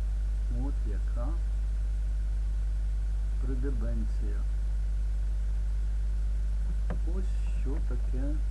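An elderly man speaks calmly and slowly, close to a microphone, with long pauses.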